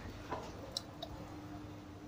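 A finger presses an elevator call button with a soft click.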